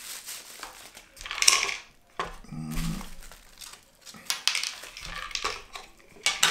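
A cardboard box scrapes and taps as hands open it.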